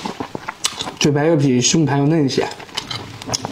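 A man speaks softly, close to a microphone.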